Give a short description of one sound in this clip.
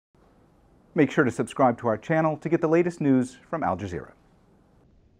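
A middle-aged man speaks calmly and clearly, close to a microphone.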